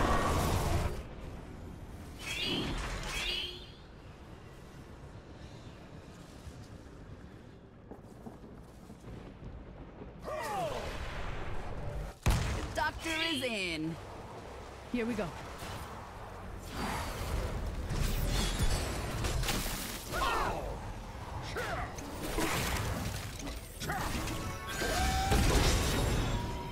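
Game sound effects of spells and attacks burst and clash.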